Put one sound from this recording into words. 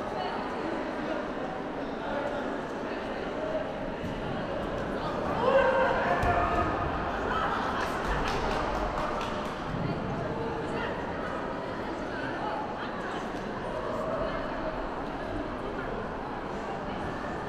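A large indoor crowd chatters and cheers in an echoing hall.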